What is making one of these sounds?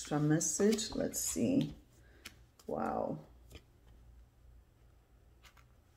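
A card is laid down softly on a cloth.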